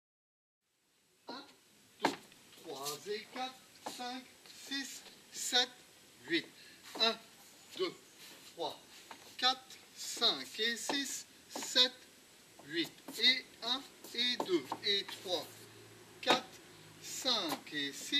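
Shoes tap and scuff on wooden boards.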